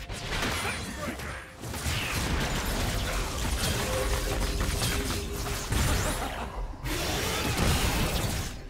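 Magic blasts and clashing hits crackle rapidly in a video game battle.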